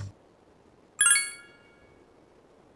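A bright chime rings once.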